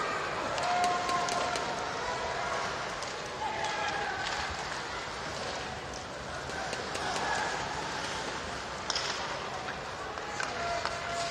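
Skates scrape and hiss on the ice.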